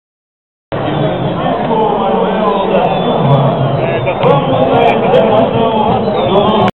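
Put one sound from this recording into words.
A large crowd of fans chants and sings loudly outdoors.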